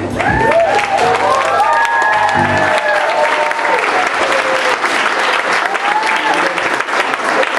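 A young man sings through a microphone over the band.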